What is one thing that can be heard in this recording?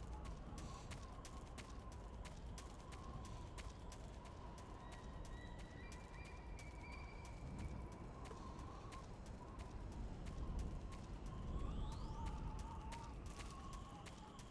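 Footsteps shuffle steadily over rocky ground.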